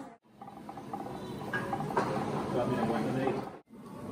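A ladle scrapes and stirs through a bubbling stew.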